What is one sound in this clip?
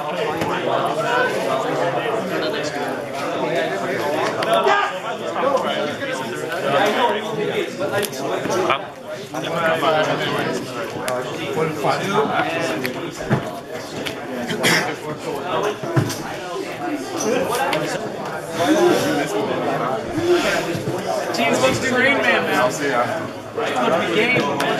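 Young men talk with each other close by.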